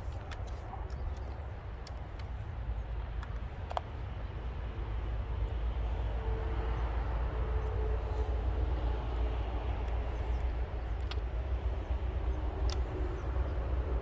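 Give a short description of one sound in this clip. A chainsaw's parts click and rattle as a man handles it.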